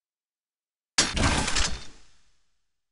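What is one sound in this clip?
A video game flame weapon fires with a fiery roar.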